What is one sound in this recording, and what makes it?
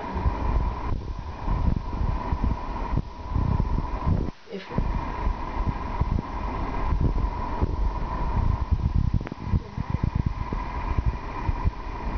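A young woman speaks calmly and clearly close by.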